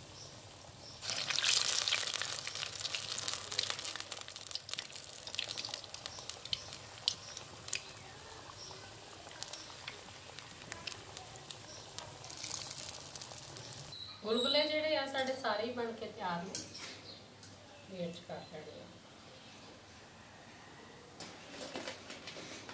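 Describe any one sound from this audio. Oil sizzles and crackles loudly as battered pieces fry.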